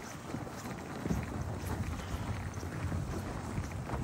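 Suitcase wheels roll and crunch over snow.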